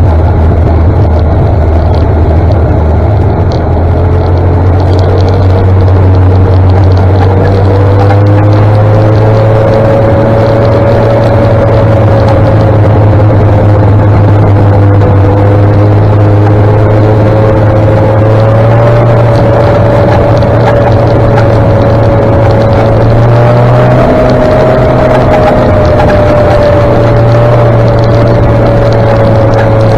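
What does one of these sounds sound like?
A motorcycle engine hums steadily up close, rising slightly in pitch.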